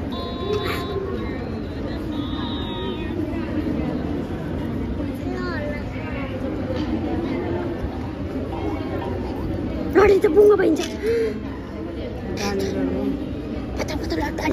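Many children and women chatter nearby in a room.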